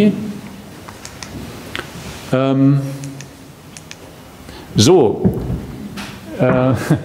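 A man speaks steadily through a microphone in an echoing hall.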